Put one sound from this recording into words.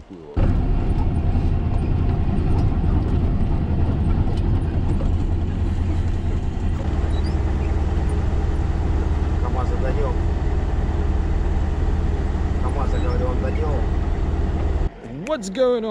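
A heavy truck engine rumbles loudly and steadily from inside the cab.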